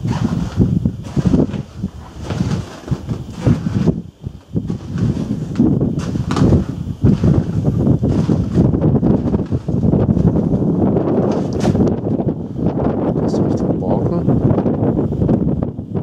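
Strong wind gusts and buffets loudly outdoors.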